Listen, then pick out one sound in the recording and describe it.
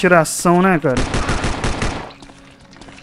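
Pistol shots ring out in quick succession.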